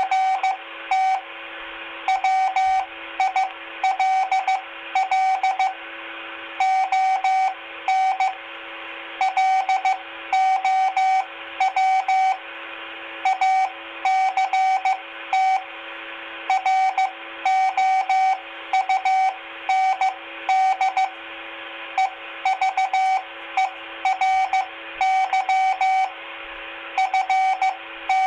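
A two-way radio hisses with steady static.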